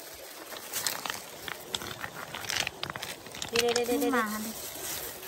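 Small stones click and clatter as hands shift them.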